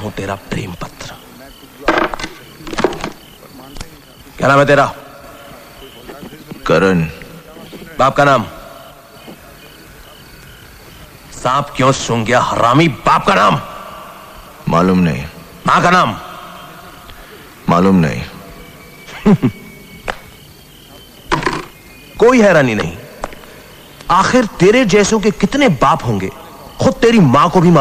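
A young man speaks sternly and loudly, close by.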